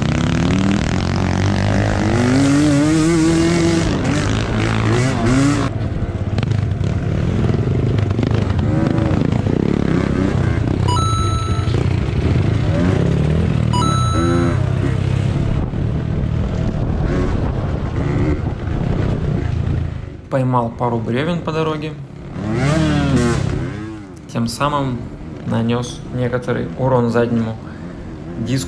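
A two-stroke enduro bike revs up and down as it rides a dirt trail.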